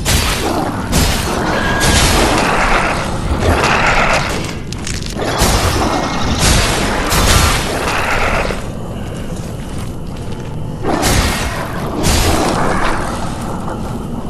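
A heavy blade swings and strikes with loud whooshes and thuds.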